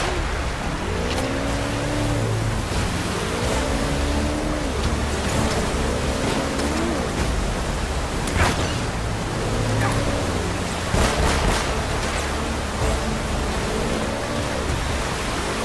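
A watercraft engine whines, its pitch rising and falling again and again.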